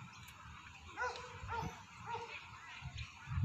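A woman speaks brightly to a dog nearby.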